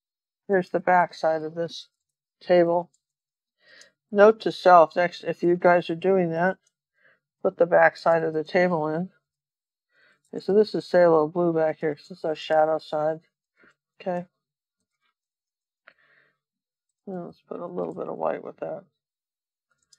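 An elderly woman talks calmly and close to a microphone.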